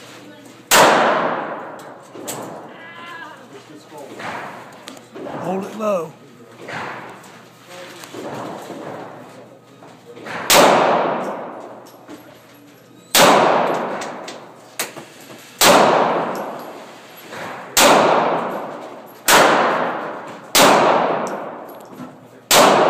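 Loud pistol shots ring out one at a time, echoing in a hard indoor room.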